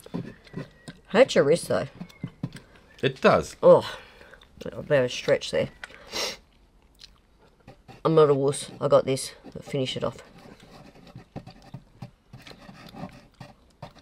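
Thick paint squelches softly as a plastic bottle squeezes it out.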